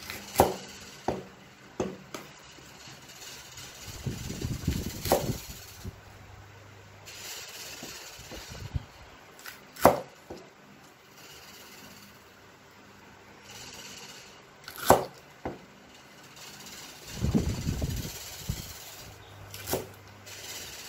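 A cleaver chops through bok choy stems onto a wooden chopping block.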